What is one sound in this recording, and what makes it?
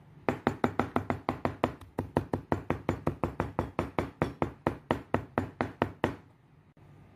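A knife chops rapidly on a cutting board.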